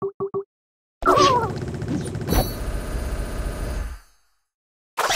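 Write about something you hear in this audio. A loud cartoon explosion bursts and rumbles before fading.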